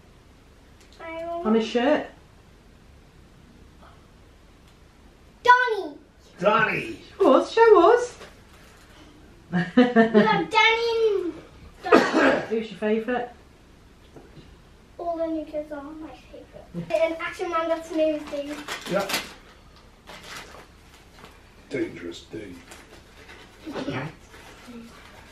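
A young girl talks with excitement close by.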